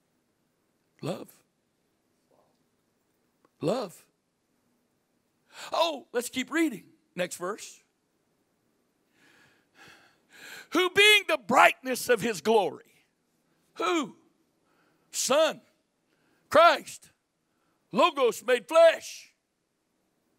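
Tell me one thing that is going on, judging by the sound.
An older man speaks into a microphone through loudspeakers, pausing between phrases.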